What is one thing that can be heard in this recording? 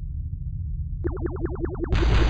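A warning alarm pulses rapidly.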